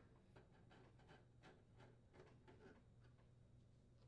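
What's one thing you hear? A screwdriver turns a screw with faint ticking.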